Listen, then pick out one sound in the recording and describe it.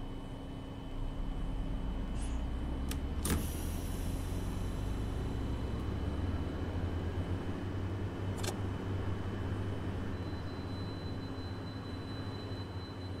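A bus engine rumbles louder as the bus pulls away.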